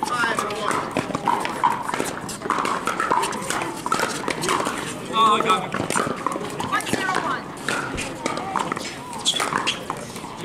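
Paddles hit a plastic ball with sharp pops.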